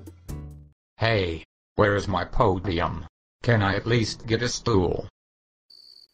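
An elderly man speaks with animation.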